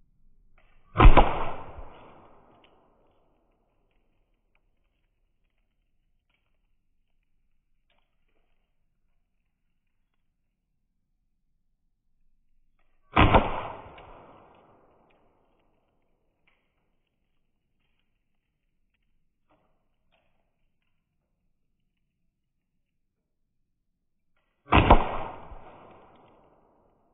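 Pepper projectiles smack against a wooden target board with sharp cracks.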